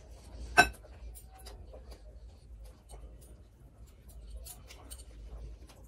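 A young woman chews food with wet, smacking mouth sounds.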